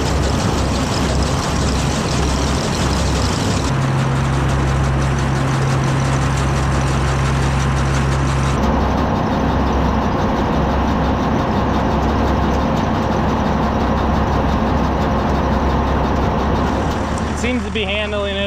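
A forage wagon unloads chopped corn silage onto a rattling elevator conveyor.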